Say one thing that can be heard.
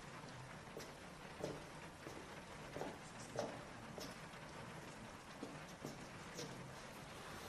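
Footsteps thud slowly on wooden stairs.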